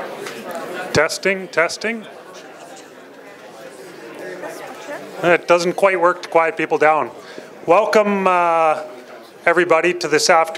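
A man speaks through a loudspeaker in an echoing hall.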